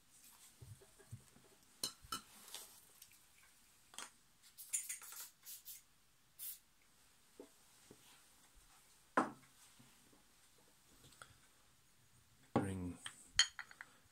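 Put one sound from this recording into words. A small plastic part clicks and knocks on a wooden table.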